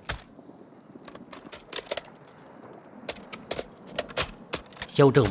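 A rifle is reloaded with sharp metallic clicks and clacks.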